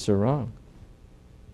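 An older man speaks briefly through a microphone.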